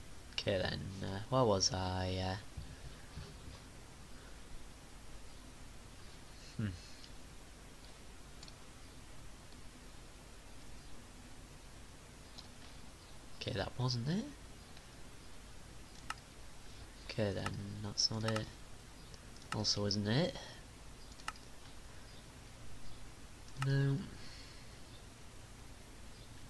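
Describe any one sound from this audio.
Menu buttons click.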